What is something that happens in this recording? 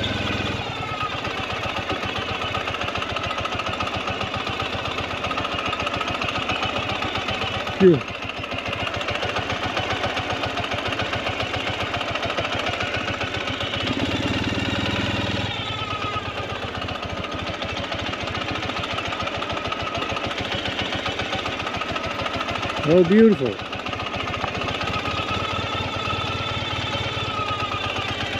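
A motorcycle engine idles with a steady, close putter.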